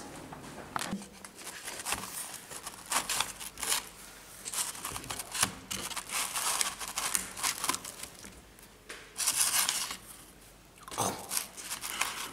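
A paper plate rustles as pizza slices are pulled apart.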